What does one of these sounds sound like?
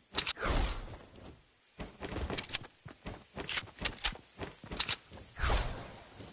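A pickaxe swishes through the air.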